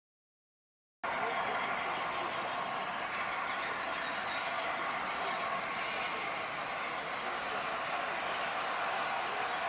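A diesel locomotive idles nearby with a steady low rumble.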